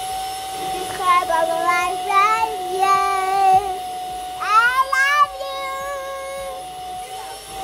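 A young girl talks loudly and playfully close by.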